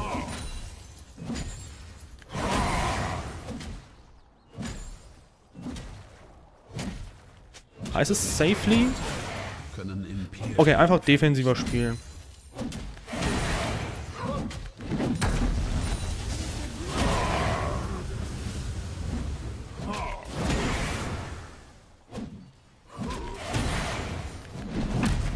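Video game combat effects crackle and whoosh in short bursts.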